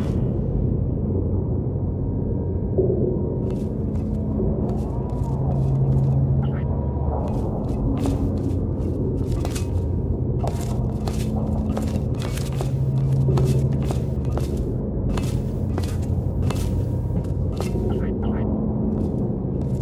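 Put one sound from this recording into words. A tram's motor hums low and steadily.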